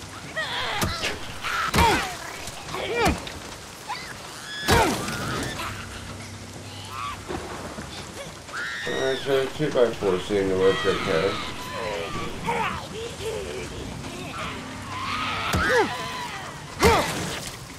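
A creature shrieks and snarls close by.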